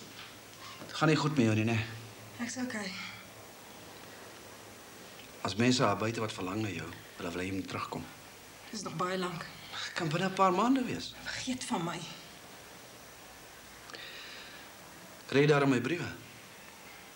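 A middle-aged man speaks nearby in a low, insistent voice.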